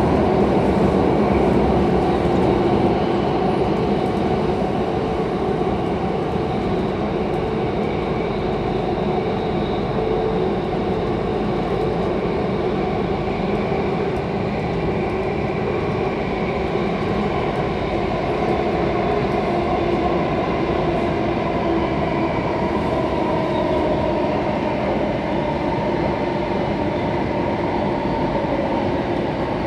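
A subway train rumbles and roars loudly along the tracks.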